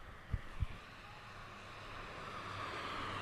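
A car approaches along the road, its tyres hissing louder as it nears.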